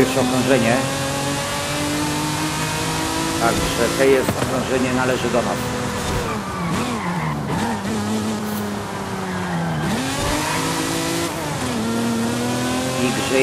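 A sports car engine roars at high revs, dropping and rising in pitch as the gears shift.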